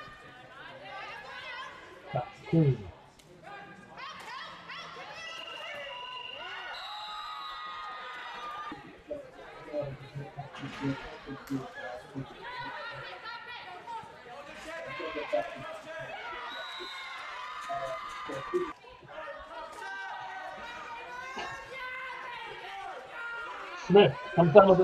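Young players shout and call to each other from across the field.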